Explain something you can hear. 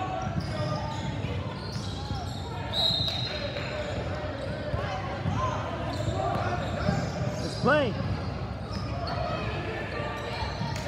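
Young girls shout and call out across a large echoing gym.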